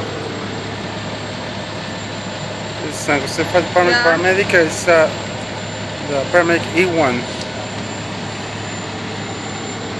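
A fire truck engine rumbles nearby.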